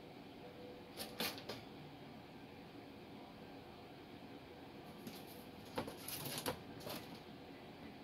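A rabbit rustles and knocks about inside a wire cage.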